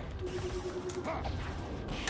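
A fireball whooshes and bursts.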